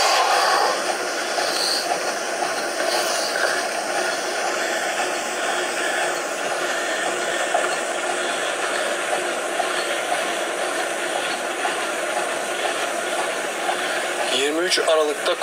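A young man talks casually and close to a phone microphone.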